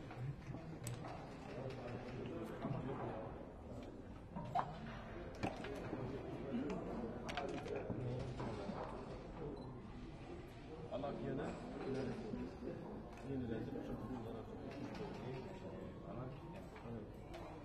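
Dice rattle in a cup.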